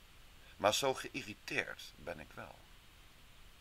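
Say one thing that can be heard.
A man speaks calmly through a microphone, as in an online call.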